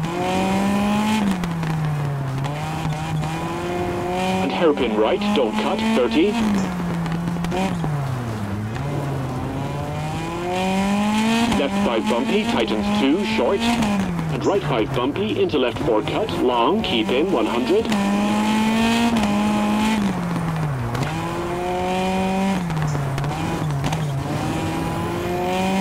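A rally car engine revs hard, rising and falling as gears shift.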